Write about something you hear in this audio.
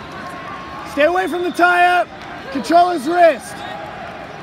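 A man shouts loudly and urgently nearby.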